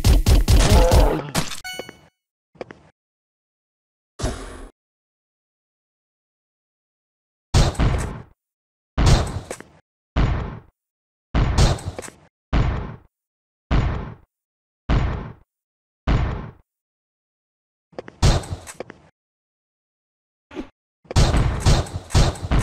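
Video game blasters fire in sharp bursts that echo away.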